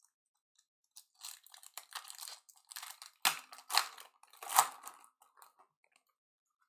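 A plastic wrapper crinkles and tears as hands open it.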